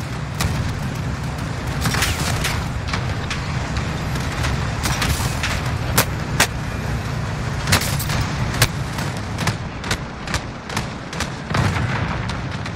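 A machine gun fires in sharp bursts.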